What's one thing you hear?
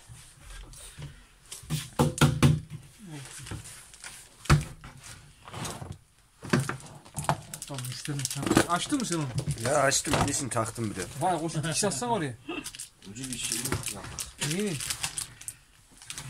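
A plastic canister knocks and rattles as it is handled.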